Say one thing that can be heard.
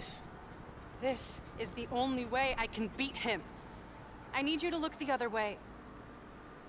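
A young woman speaks pleadingly, close by.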